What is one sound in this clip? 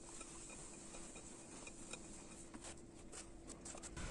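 Hands knead soft dough in a glass bowl.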